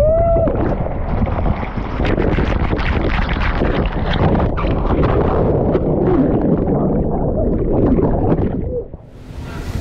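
Water rushes and splashes loudly down a slide.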